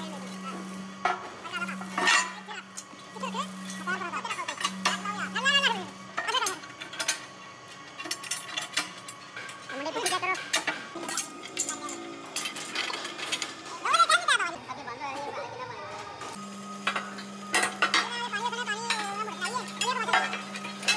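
Heavy metal parts clank and knock against each other.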